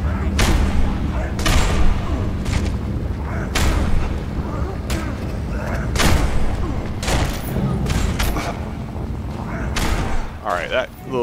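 Heavy blows land with loud thuds and crunches.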